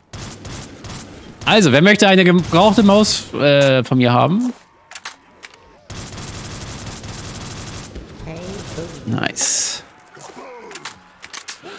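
Rapid gunfire crackles from a game.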